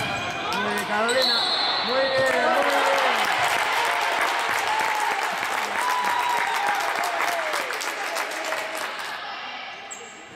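Sneakers squeak sharply on a hard court in an echoing hall.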